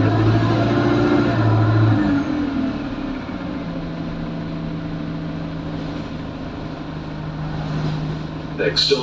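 A bus engine hums and drones steadily.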